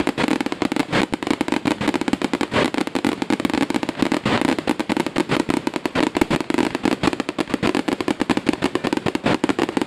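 Fountain fireworks hiss and fizz with sparks.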